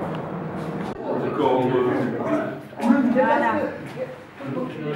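A crowd of elderly people chatter in an echoing room.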